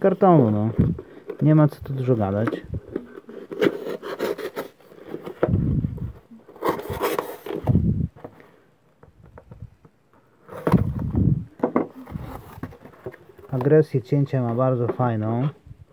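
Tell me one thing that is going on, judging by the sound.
Cardboard scrapes and rustles under handling hands.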